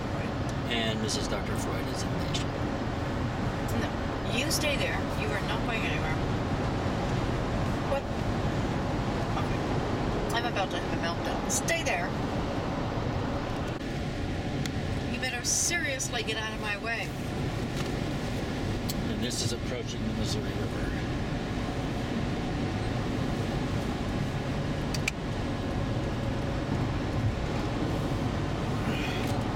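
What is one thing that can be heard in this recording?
A car hums and rumbles steadily as it drives along a highway.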